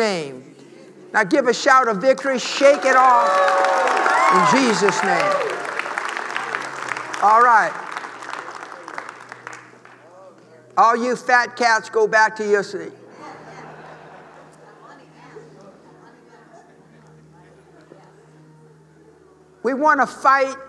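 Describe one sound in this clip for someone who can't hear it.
A man preaches with animation through a microphone in a large hall.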